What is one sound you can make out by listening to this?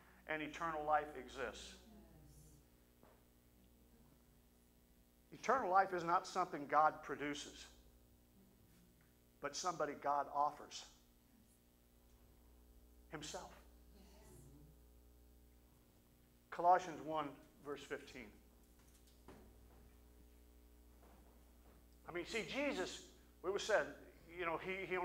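A middle-aged man speaks through a microphone in bursts, with pauses, in a large echoing hall.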